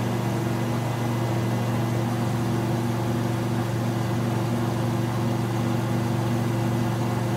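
A small propeller plane's engine drones steadily in flight.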